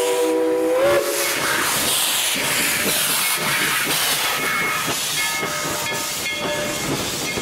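Steam hisses loudly from a locomotive.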